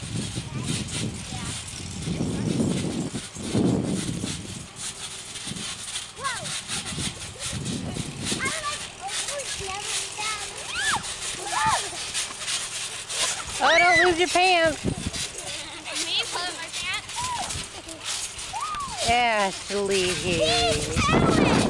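A trampoline mat thumps and creaks under bouncing feet.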